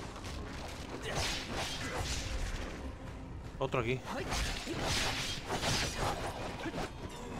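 Blades swing and slash with sharp whooshes.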